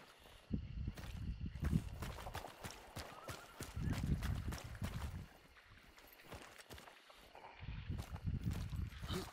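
Footsteps squelch through mud and shallow water.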